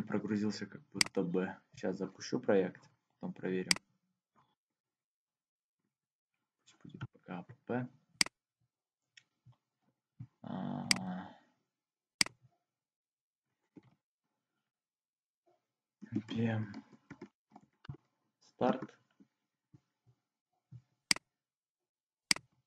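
A computer mouse clicks sharply now and then.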